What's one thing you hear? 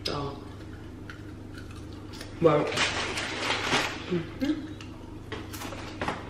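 A young woman crunches on chips.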